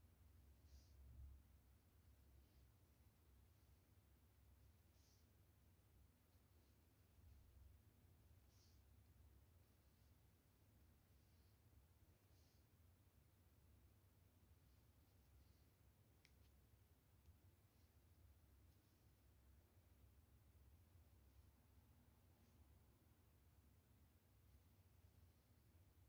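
Thread softly rasps as it is pulled through fabric.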